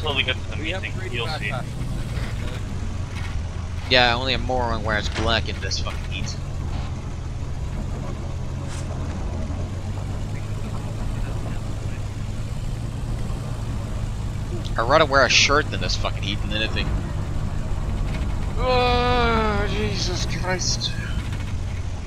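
Men talk to each other in short exchanges, close by.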